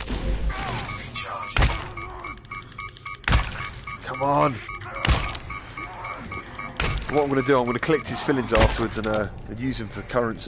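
Heavy blows thud and smack against a body in a struggle.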